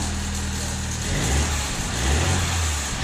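A car engine revs and rumbles unevenly.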